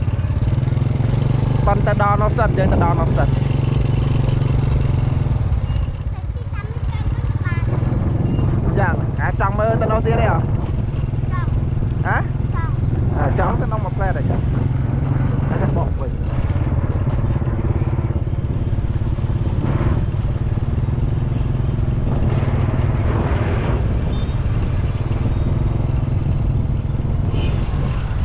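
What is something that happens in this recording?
A motorbike engine hums steadily at close range.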